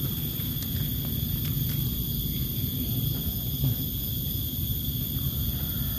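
Dry leaf litter rustles as a hand picks a mushroom.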